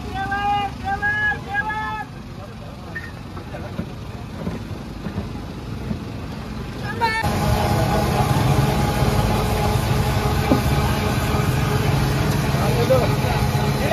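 A busy street murmurs with voices and traffic outdoors.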